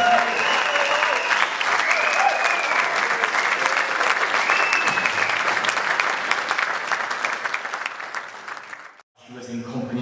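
An acoustic guitar strums on a stage.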